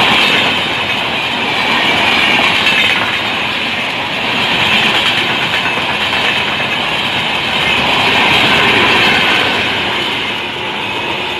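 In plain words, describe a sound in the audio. A passenger train rushes past close by, rumbling and clattering loudly.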